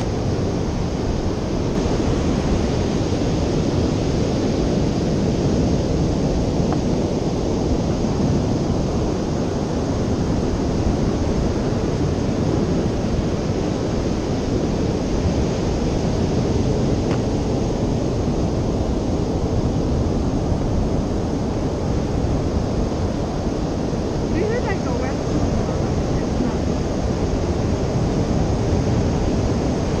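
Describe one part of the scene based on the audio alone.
Waves break and wash onto the shore steadily.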